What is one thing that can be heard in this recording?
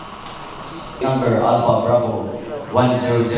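A young man speaks into a microphone, loud and close.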